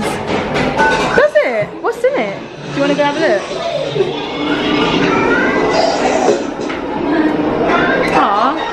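Young children talk and squeal excitedly nearby.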